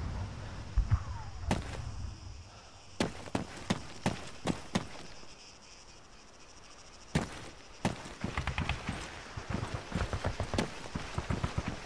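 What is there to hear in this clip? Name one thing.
Footsteps crunch on dry grass and dirt.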